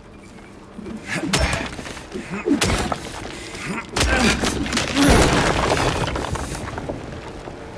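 A metal pipe strikes and smashes through boards and debris.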